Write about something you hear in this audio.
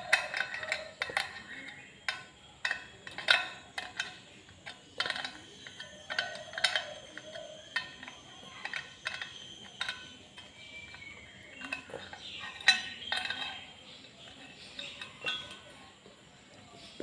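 A spoke wrench clicks and ticks against metal spoke nipples.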